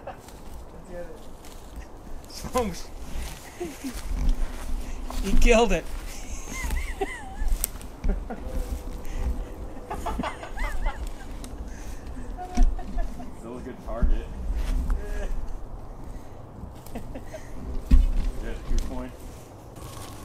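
Men talk and laugh nearby outdoors.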